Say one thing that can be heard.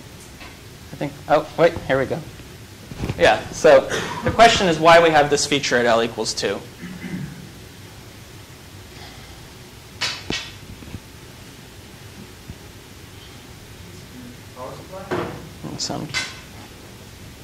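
A man lectures through a microphone, speaking in bursts with pauses.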